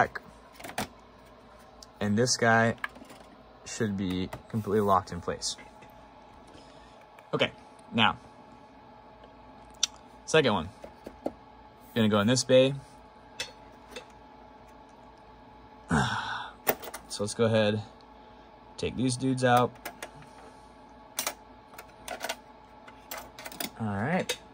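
Plastic and metal parts click and clatter inside a computer case.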